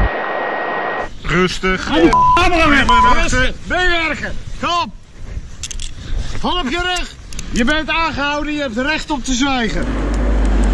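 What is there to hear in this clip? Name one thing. A man shouts loudly at close range.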